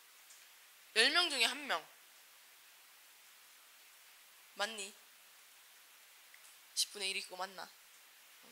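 A young woman speaks into a microphone in short, lively bursts with pauses between them.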